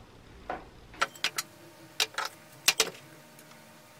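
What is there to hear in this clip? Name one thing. Metal parts clink and knock on a wooden table.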